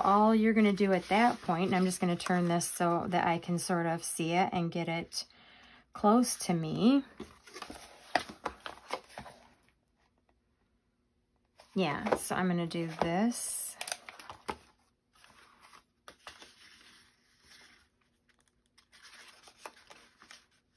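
Stiff card pages rustle and flap as they are handled.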